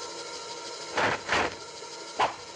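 Metal blades clash and scrape.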